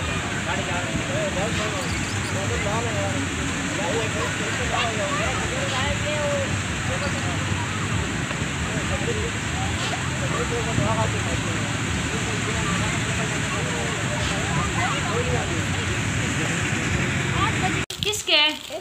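A crowd of people chatters and shouts outdoors.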